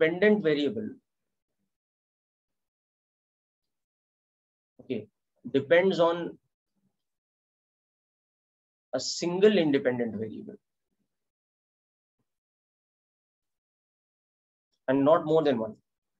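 A man explains calmly through a microphone, in short phrases with long pauses.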